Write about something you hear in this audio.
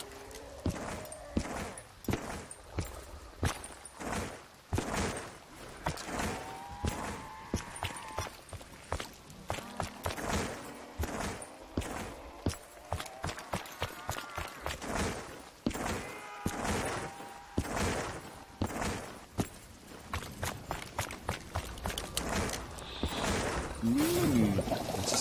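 A gun fires in sharp, rapid shots.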